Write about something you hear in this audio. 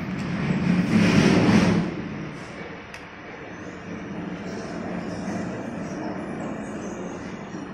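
Metal parts clack and tap as hands fit a piece into a machine.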